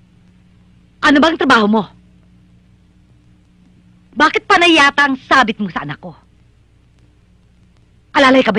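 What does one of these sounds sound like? A middle-aged woman speaks firmly and close by, in short bursts.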